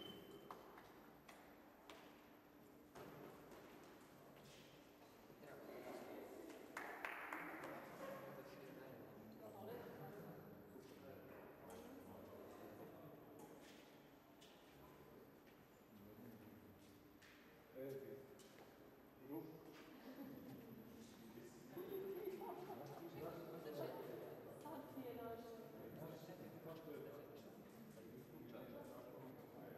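Voices of several adults talk nearby in a large echoing hall.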